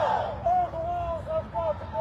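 A man shouts through a megaphone.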